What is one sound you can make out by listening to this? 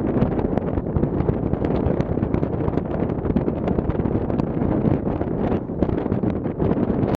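Strong wind rumbles and buffets loudly outdoors.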